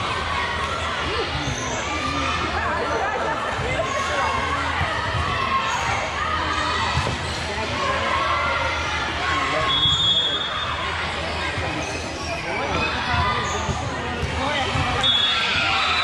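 Young girls chatter and call out in a large echoing hall.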